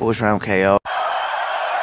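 A man shouts loudly into a microphone.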